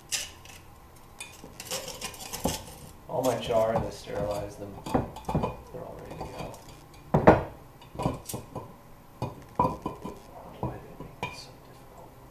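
Metal tongs clink and scrape against a stoneware crock.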